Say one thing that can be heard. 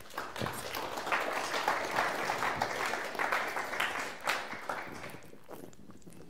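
An audience applauds in a hall, then the clapping dies away.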